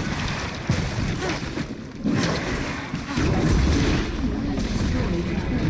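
Magic spells crackle and burst in quick bursts.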